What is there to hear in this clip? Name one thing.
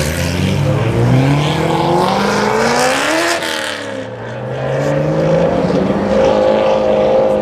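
A sports car engine revs loudly, rising and falling in pitch as the car accelerates past.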